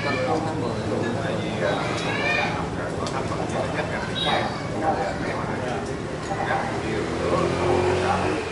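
Dishes and chopsticks clink on a table.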